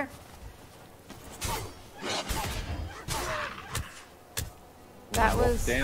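A sword strikes a wolf.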